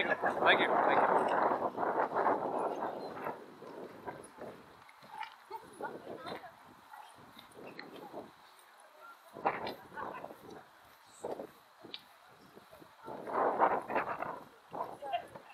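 Wind buffets hard outdoors in gusts.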